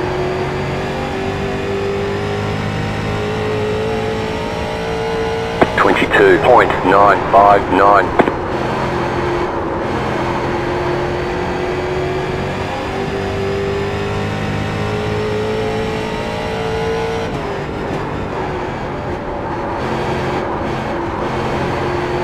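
A race car engine roars steadily, its pitch rising and dipping through the turns.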